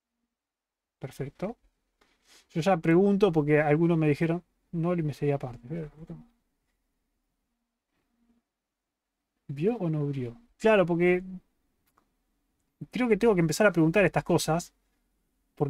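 A young man speaks with animation, close to a microphone, pausing between phrases.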